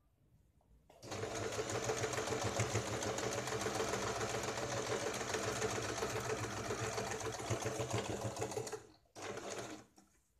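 A sewing machine runs steadily, whirring and stitching fast.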